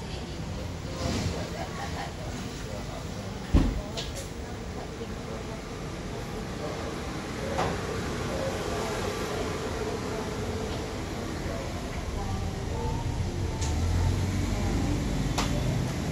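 Small cardboard boxes tap and rustle as they are handled nearby.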